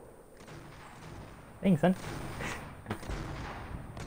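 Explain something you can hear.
A shotgun fires a loud blast.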